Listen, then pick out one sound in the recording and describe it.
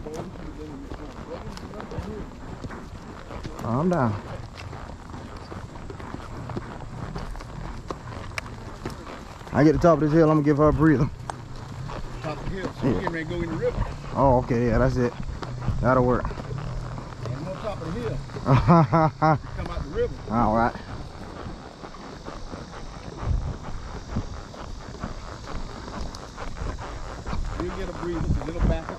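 A horse's hooves thud steadily on a dirt trail.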